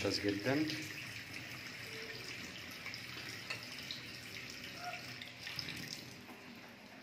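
Water runs steadily from a tap into a metal sink.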